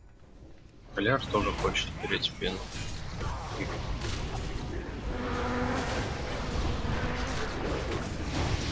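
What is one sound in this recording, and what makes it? Spells and weapon blows crash loudly in a fast game battle.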